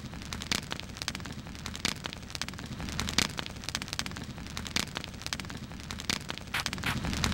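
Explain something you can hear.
A campfire crackles and pops steadily.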